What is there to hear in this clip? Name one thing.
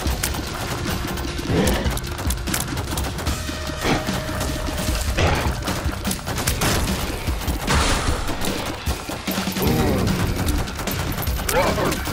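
A monster lets out a loud, growling roar.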